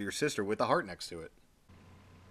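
Electronic game music plays briefly.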